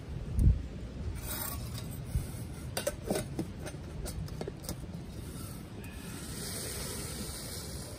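A metal pot clanks as it is lifted from the fire.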